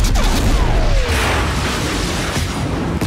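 A crash explodes with a loud burst.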